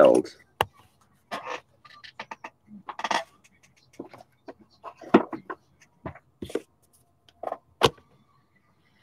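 Cards tap and click as they are handled.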